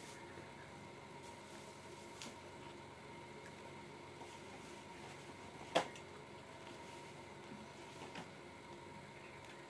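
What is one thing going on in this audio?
A young woman eats, chewing and crunching food close to a microphone.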